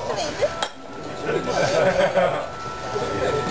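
A young woman coughs and sputters.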